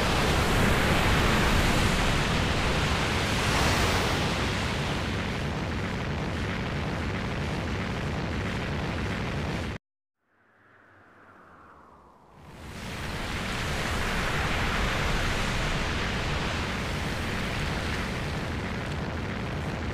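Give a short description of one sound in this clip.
A strong wind roars and rushes, breaks off into near silence, then swells again.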